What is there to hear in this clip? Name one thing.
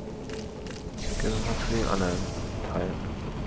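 A hatch opens with a hissing whoosh.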